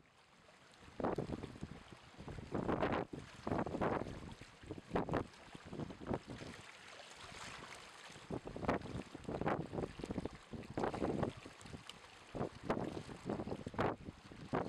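Shallow water laps and splashes against rocks in small surges.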